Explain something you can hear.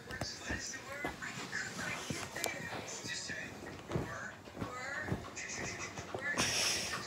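A cat chirps and trills close by.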